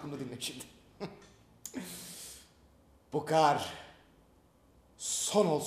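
A young man speaks nearby in a relaxed, drawn-out way.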